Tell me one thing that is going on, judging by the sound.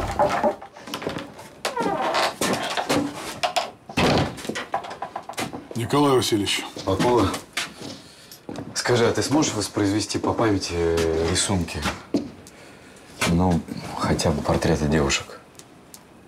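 A man speaks quietly and calmly nearby.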